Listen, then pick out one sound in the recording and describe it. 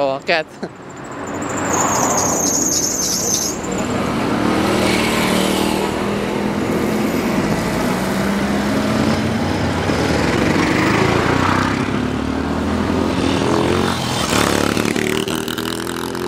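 A motorcycle engine starts and runs with a steady rumble.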